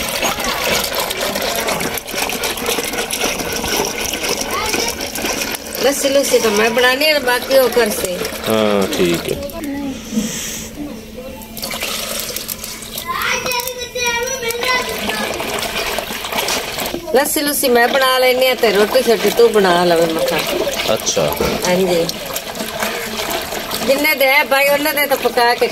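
Water splashes as a woman mixes dough.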